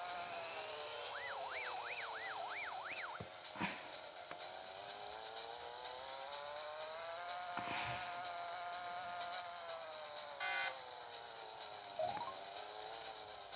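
A small game kart engine hums steadily, slowly rising and falling in pitch.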